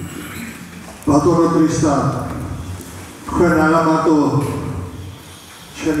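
An older man speaks loudly into a microphone.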